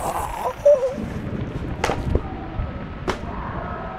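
A notebook falls and lands with a soft slap on a hard floor.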